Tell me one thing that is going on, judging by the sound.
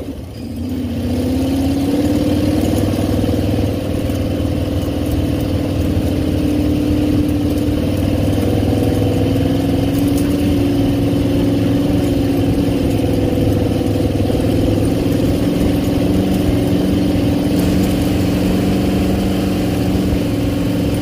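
A buggy engine roars steadily, revving up at the start.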